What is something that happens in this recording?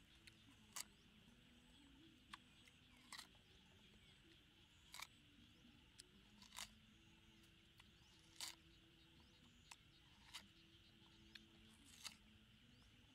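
A boy bites and crunches into a watermelon.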